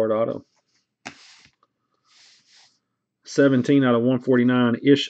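A foil card pack crinkles and tears open.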